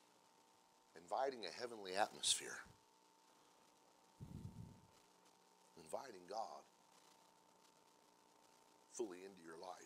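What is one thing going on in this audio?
A man speaks slowly and deliberately into a microphone, with pauses between phrases.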